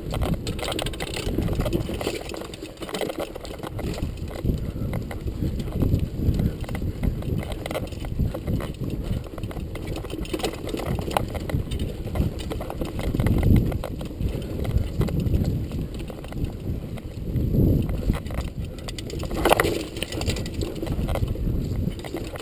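Bike tyres roll and crunch over dry leaves and dirt.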